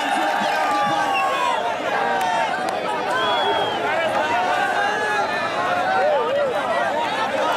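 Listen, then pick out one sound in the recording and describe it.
Men shout loudly nearby.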